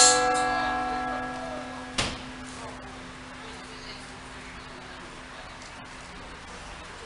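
A church bell strikes twice and rings out, slowly fading.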